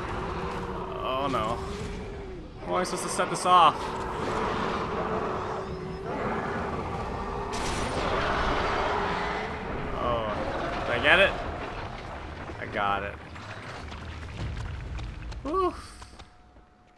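A monster shrieks and growls loudly.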